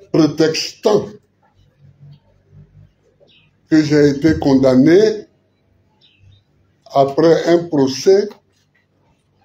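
An elderly man speaks firmly into microphones in short phrases with long pauses.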